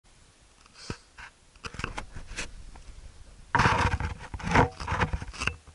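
A gloved hand rubs and bumps against the microphone close up.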